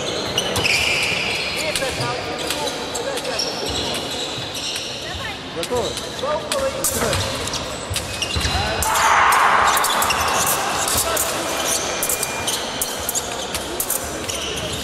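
Fencers' shoes squeak and thud on a hard floor.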